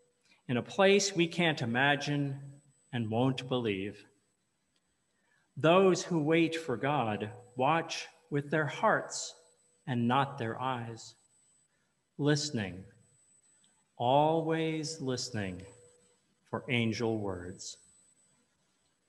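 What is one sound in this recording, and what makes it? A man speaks calmly and slowly into a microphone in a hall with a slight echo.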